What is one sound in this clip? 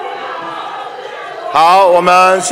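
Many people murmur and talk in a large echoing hall.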